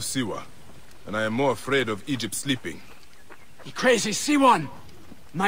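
A second man answers with animation, shouting.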